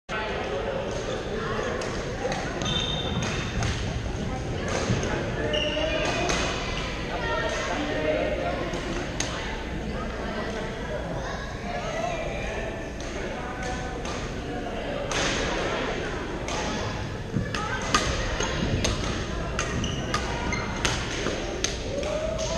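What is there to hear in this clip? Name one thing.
Sneakers squeak on the hardwood floor.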